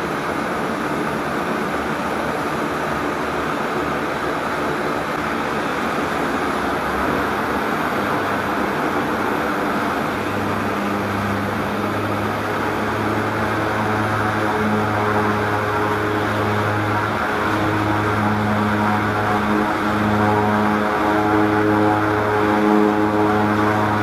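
A propeller plane's engines roar steadily close by.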